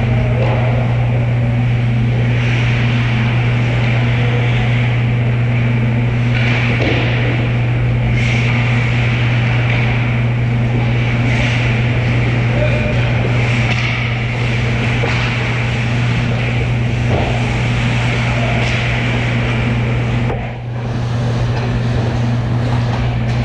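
Skate blades scrape and hiss on ice.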